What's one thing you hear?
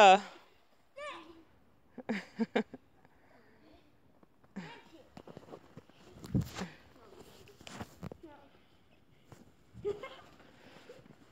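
Small children call out playfully outdoors.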